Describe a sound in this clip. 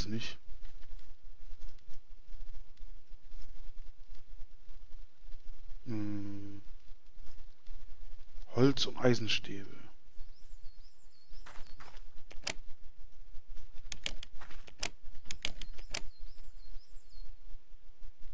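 Short, sharp clicks tick now and then.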